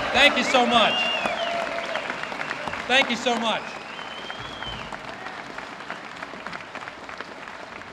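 A crowd applauds, the clapping slowly fading.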